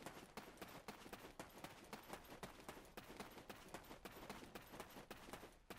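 A horse's hooves clop on a dirt track.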